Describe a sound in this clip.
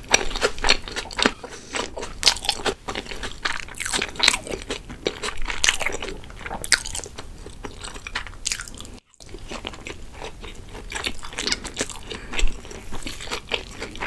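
Chopsticks click against a plate.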